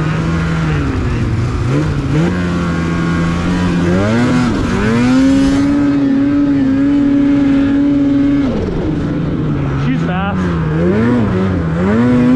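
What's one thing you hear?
A snowmobile engine roars close by, revving up and down.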